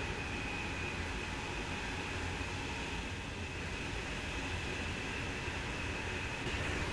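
A high-speed train roars past at speed with a steady rushing hum.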